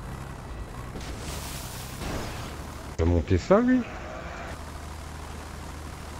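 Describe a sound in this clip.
Water splashes and sprays as a vehicle ploughs through it.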